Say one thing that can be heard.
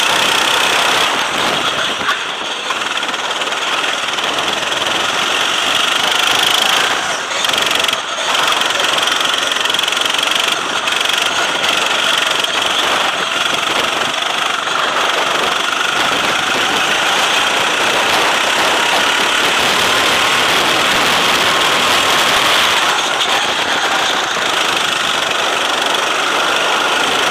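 A kart engine buzzes loudly up close, revving and easing through the corners.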